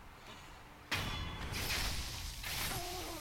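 A sword slashes and clashes in a sudden fight.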